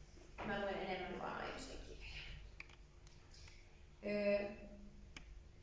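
A young woman speaks into a microphone in a large echoing hall.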